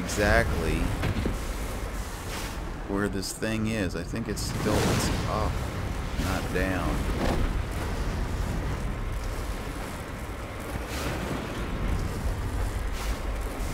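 A vehicle engine rumbles low and steady as the vehicle climbs a rocky slope.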